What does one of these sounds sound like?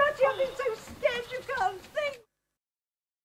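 A woman speaks loudly and with animation in an outdoor space.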